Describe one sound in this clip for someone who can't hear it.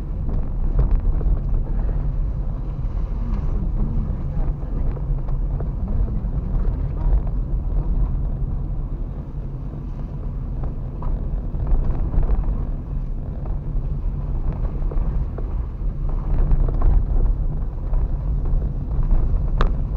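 A car's body rattles and knocks over bumps.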